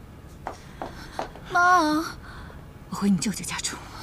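A middle-aged woman speaks firmly.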